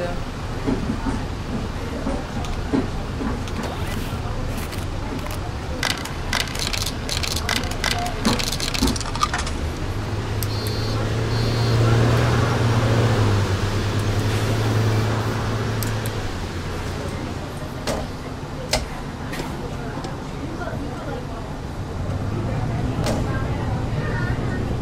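A bus engine hums steadily and revs up as the bus pulls away.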